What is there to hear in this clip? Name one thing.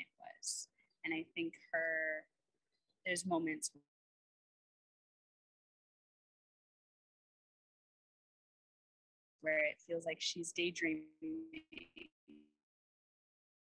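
A young woman talks with animation over an online call, pausing between phrases.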